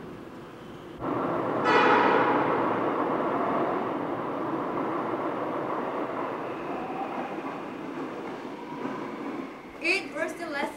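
A subway train approaches through a tunnel with a loud, fading metallic screech.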